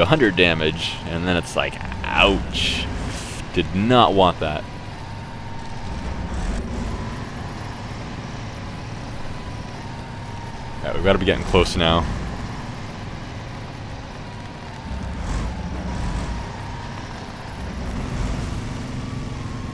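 A heavy truck engine rumbles low and steadily.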